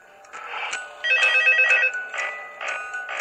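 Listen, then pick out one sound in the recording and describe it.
A music box plays a tinkling tune.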